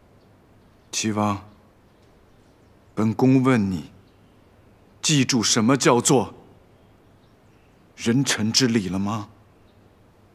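A young man speaks calmly and slowly, close by, in short phrases.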